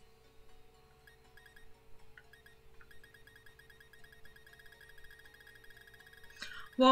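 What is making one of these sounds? Short electronic blips sound in quick succession.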